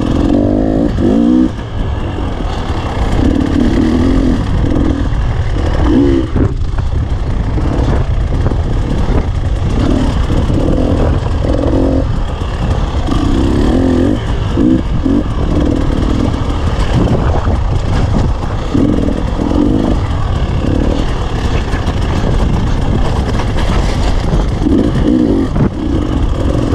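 Tyres crunch over loose rocks and gravel.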